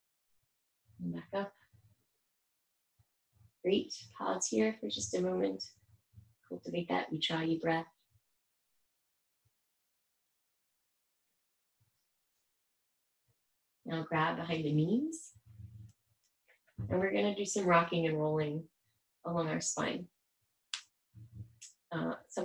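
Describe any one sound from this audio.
A woman speaks calmly nearby, in short phrases with pauses.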